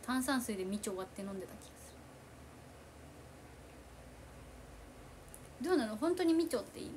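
A young woman speaks calmly and softly into a nearby microphone, pausing in between.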